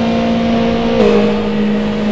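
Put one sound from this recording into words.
A racing car engine shifts up a gear, its pitch dropping briefly.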